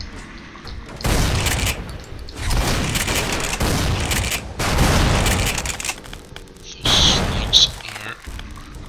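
A shotgun fires loudly, echoing in a metal corridor.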